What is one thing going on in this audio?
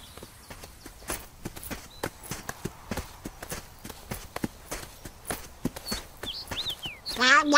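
Footsteps patter along a dirt path.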